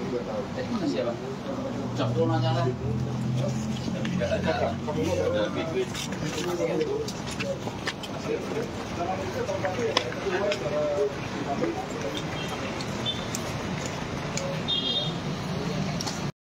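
A crowd of men talk over one another nearby.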